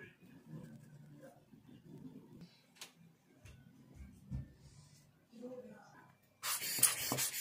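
Plastic parts click and knock as they are handled.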